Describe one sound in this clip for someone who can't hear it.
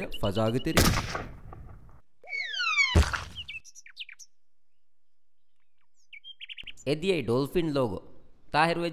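A man speaks in a cartoonish voice with animation.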